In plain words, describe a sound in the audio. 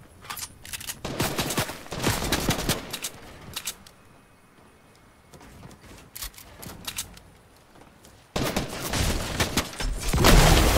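Building pieces click and thud into place in rapid bursts.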